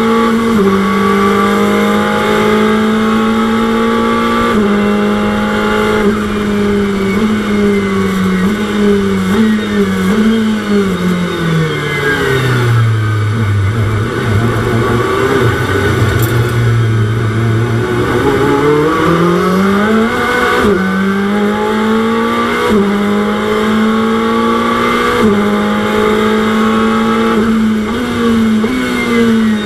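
A race car engine roars loudly, shifting gears and dropping in pitch while braking before revving back up.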